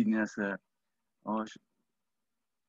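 A middle-aged man speaks calmly in short bursts over an online call.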